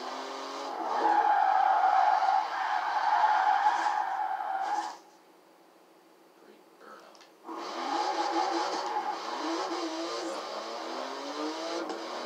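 A racing car engine roars loudly and shifts through its gears.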